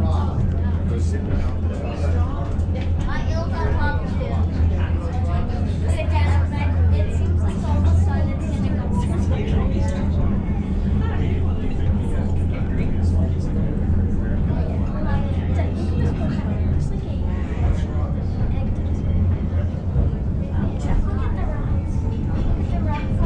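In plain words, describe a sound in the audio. A railcar hums and rumbles steadily as it climbs a steep track.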